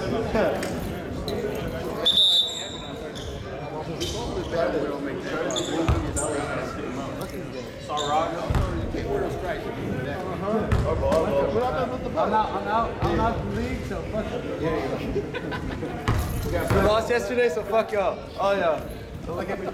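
Young men talk and call out casually in a large echoing hall.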